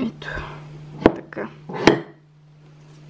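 A glass vase knocks lightly against a hard surface.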